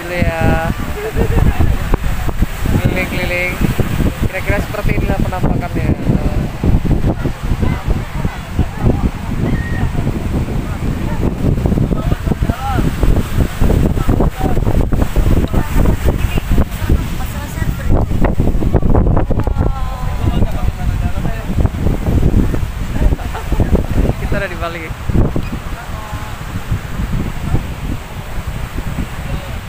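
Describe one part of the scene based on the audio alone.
Wind buffets the microphone loudly outdoors.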